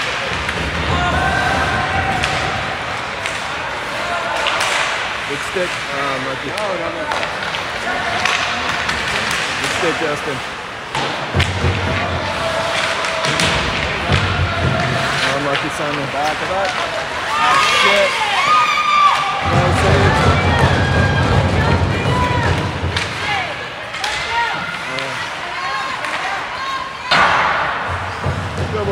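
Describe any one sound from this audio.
A crowd of spectators talks and murmurs in an echoing rink.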